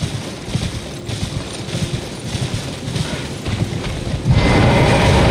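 Footsteps rustle quickly through dry grass.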